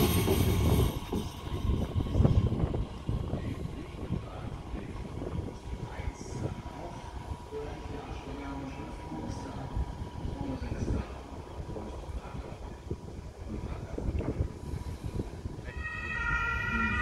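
A train rolls slowly in the distance with a soft rumble.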